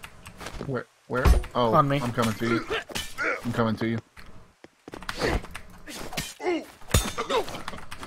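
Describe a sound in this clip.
A wooden spear strikes a man.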